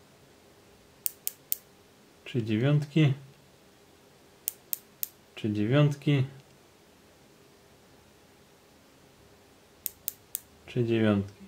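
A small ratchet clicks in quick bursts of three.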